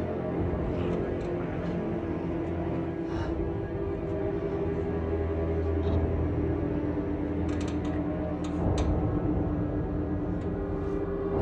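Papers rustle on a desk.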